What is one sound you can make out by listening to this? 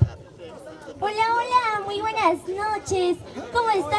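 A young woman sings loudly into a microphone.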